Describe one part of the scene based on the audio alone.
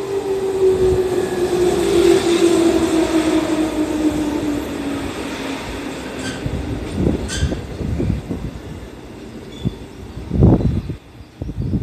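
Train wheels rumble and clack over the rails.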